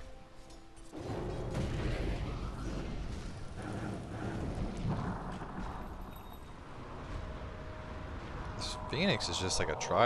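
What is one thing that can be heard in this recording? Fiery magic blasts roar and crackle.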